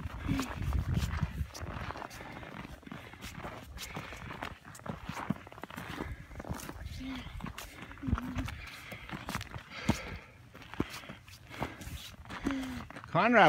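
Footsteps crunch on snowy ground.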